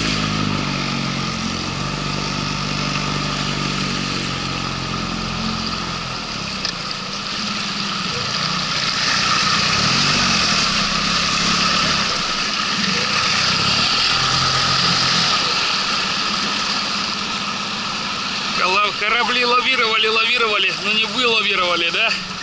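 Water rushes and splashes around a small boat.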